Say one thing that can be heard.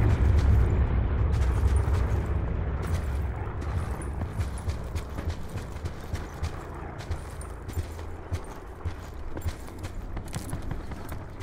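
Footsteps run quickly through rustling grass.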